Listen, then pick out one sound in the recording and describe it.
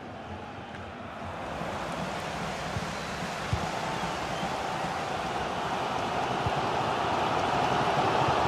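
A stadium crowd roars steadily, growing louder.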